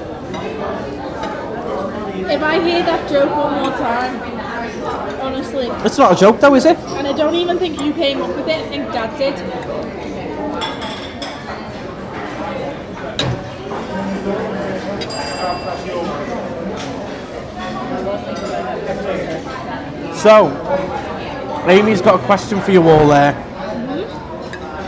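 A crowd of diners chatters in the background.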